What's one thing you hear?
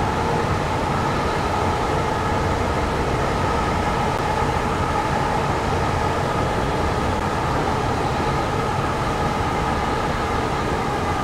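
A train engine drones steadily as the train rolls along.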